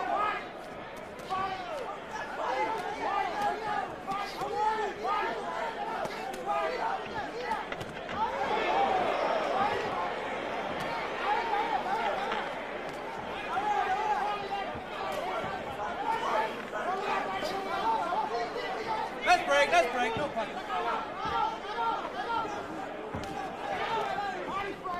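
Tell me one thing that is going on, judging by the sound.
A large crowd murmurs and cheers around the ring.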